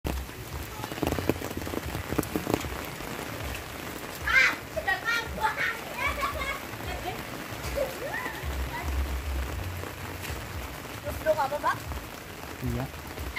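Steady rain falls outdoors, pattering on a wet road.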